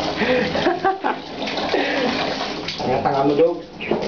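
Water splashes from a tap.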